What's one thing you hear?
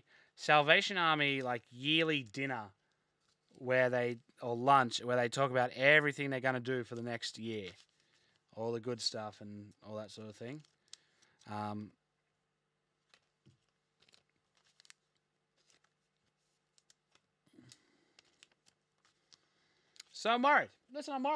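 Card packs rustle and crinkle in hands.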